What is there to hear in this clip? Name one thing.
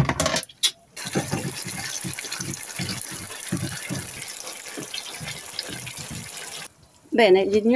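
A wooden spoon scrapes and knocks against a frying pan.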